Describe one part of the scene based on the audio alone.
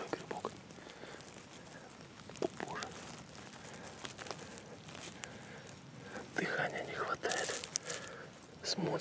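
A hand rustles through dry pine needles.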